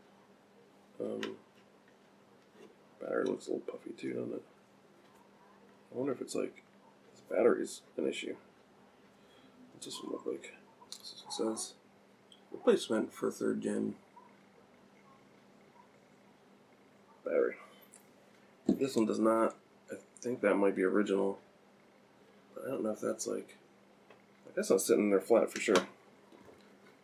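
A man talks calmly and close by, in short phrases with pauses.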